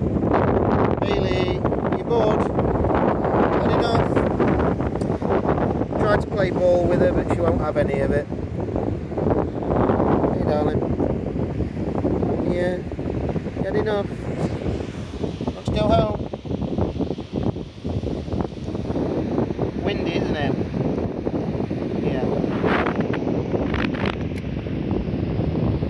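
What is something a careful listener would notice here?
Wind blusters and rumbles steadily outdoors.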